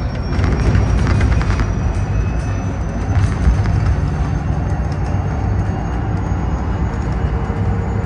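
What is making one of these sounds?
Loose fittings inside the bus rattle and click.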